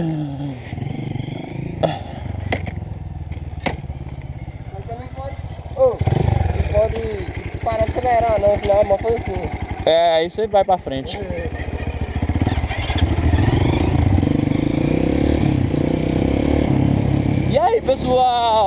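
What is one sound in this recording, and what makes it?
A motorcycle engine runs and revs up close.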